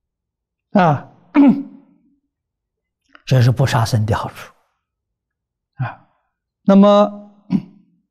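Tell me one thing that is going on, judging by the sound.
An elderly man speaks calmly and slowly into a close microphone, with pauses between phrases.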